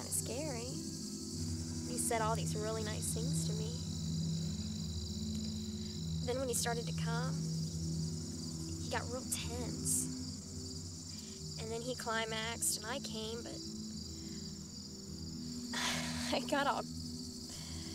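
A young woman speaks softly and calmly nearby.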